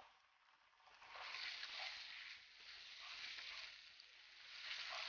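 Onions sizzle in a frying pan.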